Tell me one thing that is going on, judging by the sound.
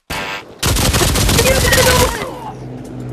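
A gun fires a rapid burst of loud shots.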